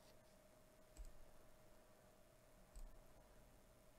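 A mouse button clicks a few times.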